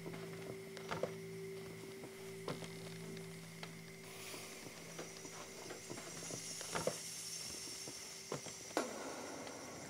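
Slow footsteps thud on wooden floorboards.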